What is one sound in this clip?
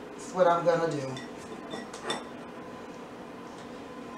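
A metal utensil clinks against a baking tray.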